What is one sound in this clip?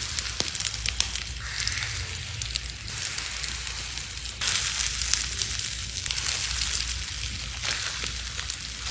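Fingers squeeze and crush a soft, crumbly clump, with crisp crackling and rustling.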